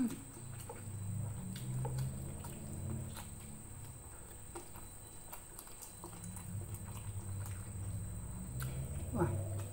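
Food crunches and squelches as fingers pick through it.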